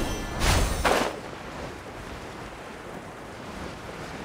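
Wind rushes steadily past while gliding.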